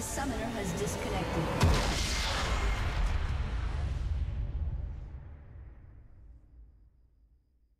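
Magic spell effects crackle and whoosh in a fight, then fade away.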